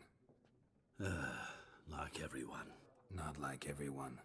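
A second man speaks calmly in reply, close by.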